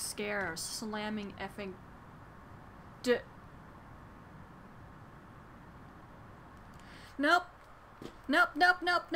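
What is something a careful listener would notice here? A young woman speaks with animation into a close microphone, in short excited bursts.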